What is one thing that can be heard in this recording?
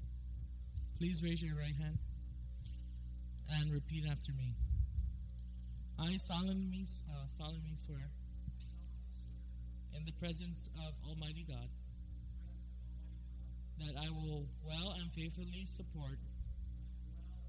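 A man speaks into a microphone, heard through a loudspeaker in a large room.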